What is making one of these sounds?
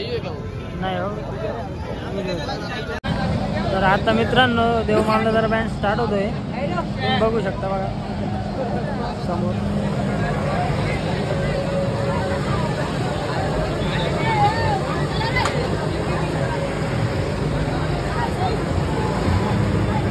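Loud music booms from a truck's speakers.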